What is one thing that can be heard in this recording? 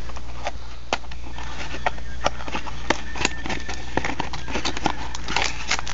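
A cardboard box flap is pulled open.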